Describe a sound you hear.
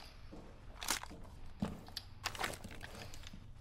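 A game character swaps a submachine gun for a pistol with metallic clicks and rattles.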